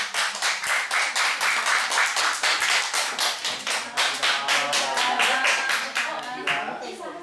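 A group of children claps quickly in rhythm.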